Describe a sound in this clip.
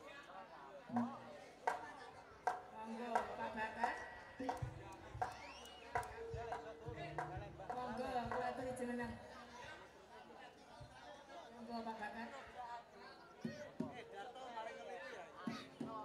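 Drums are struck in sharp beats.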